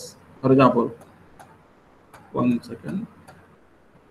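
A middle-aged man speaks in short phrases over an online call.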